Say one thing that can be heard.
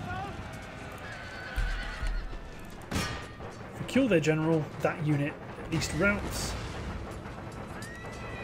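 Many horses gallop across open ground.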